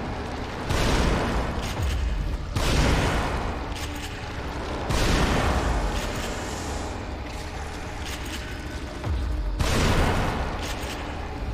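A shotgun fires loud blasts several times.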